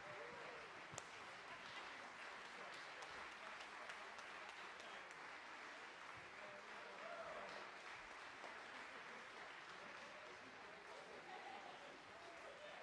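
An audience applauds steadily in a large, echoing hall.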